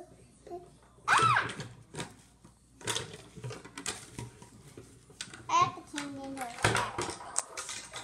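Plastic toys knock against a table.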